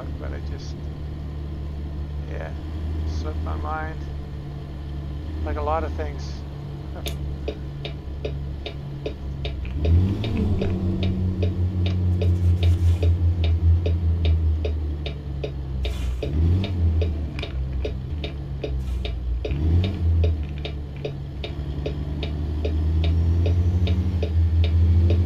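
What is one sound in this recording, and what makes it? A truck engine rumbles steadily and revs up through gear changes.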